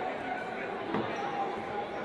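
A ball bounces on the court.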